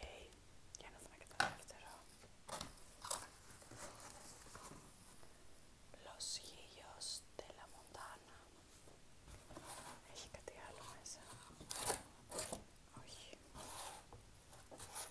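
Cardboard and paper rustle and scrape as they are handled.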